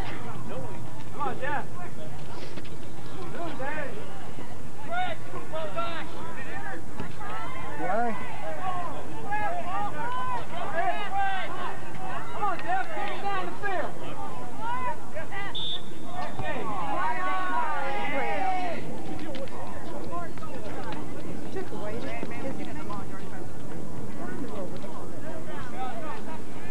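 Young players and onlookers shout and call out across an open outdoor field.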